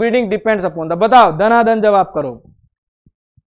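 A young man speaks clearly into a microphone, explaining.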